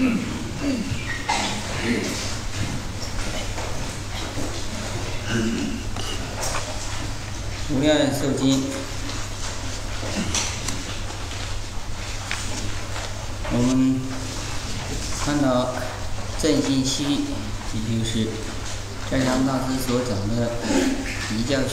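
A man speaks calmly and steadily into a microphone.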